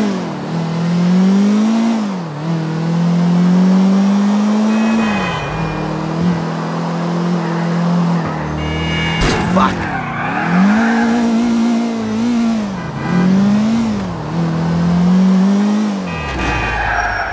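A car engine revs loudly, rising and falling as it shifts gears.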